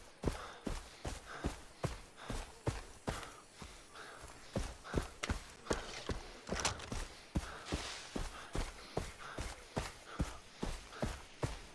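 Footsteps pad through grass.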